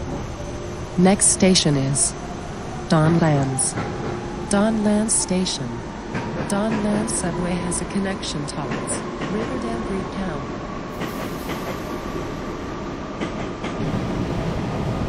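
Train wheels screech and clatter on the rails.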